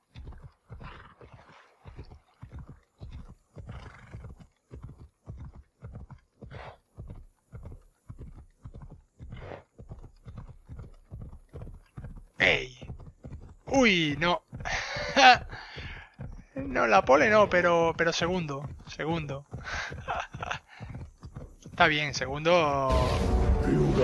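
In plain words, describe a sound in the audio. Hooves thud in a quick, steady rhythm as a horse gallops.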